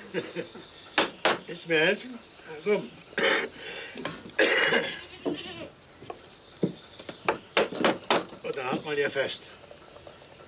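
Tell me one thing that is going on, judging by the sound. A wooden mallet knocks on wooden bars.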